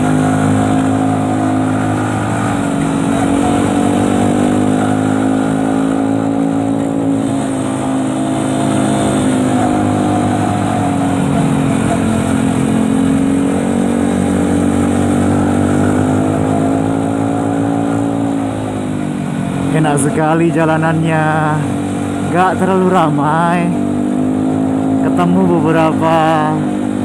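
A motorcycle engine drones steadily, its pitch rising and falling as the bike speeds up and slows.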